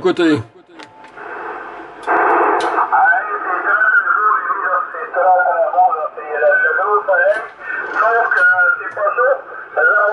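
A man talks over a crackly, thin-sounding radio loudspeaker.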